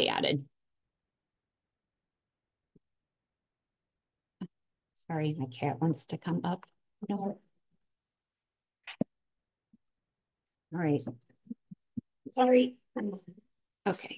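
A young woman speaks calmly through a microphone in an online call, with pauses.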